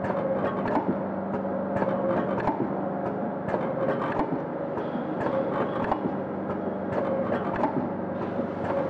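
A packaging machine clicks and clacks in a repeating rhythm.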